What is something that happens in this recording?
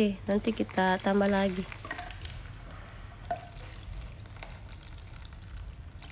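Water pours into a bowl of flour.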